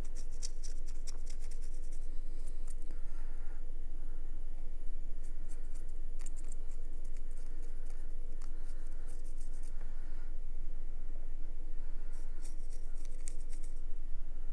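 A paintbrush scrapes and ticks softly against a small figure.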